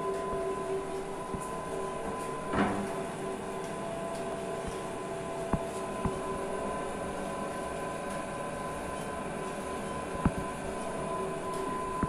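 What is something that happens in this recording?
Industrial machinery hums steadily with a whirring motor.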